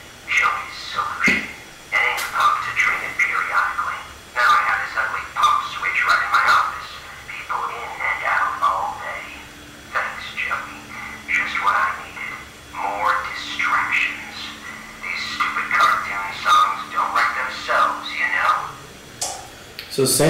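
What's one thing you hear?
A young man speaks into a close microphone, reading out with animation.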